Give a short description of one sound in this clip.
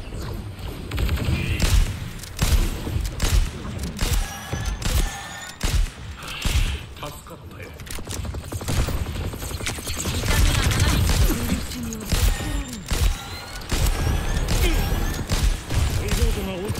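Gunfire from a video game rifle crackles in rapid bursts.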